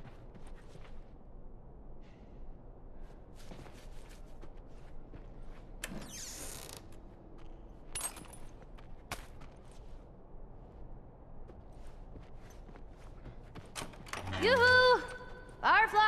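Footsteps crunch over debris.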